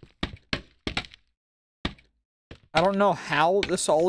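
Wooden blocks are placed with short, soft knocks.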